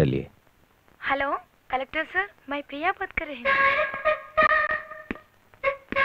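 A young man talks into a telephone with animation.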